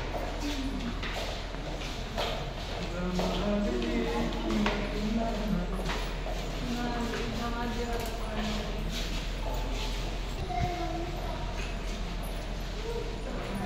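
Footsteps tap on a hard floor in an echoing hallway.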